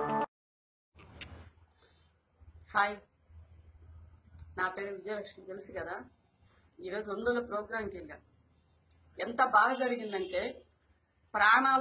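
A middle-aged woman speaks calmly and close by, with pauses.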